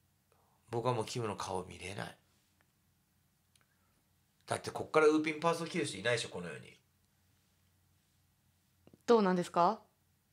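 Mahjong tiles click as a hand sets them down.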